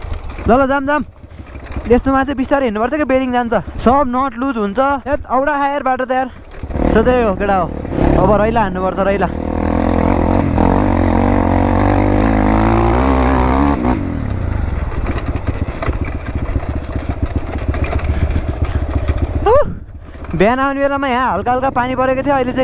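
A dirt bike engine rumbles and revs as the bike rides over a rough track.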